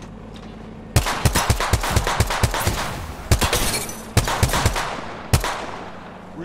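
A scoped rifle fires a rapid series of gunshots in a video game.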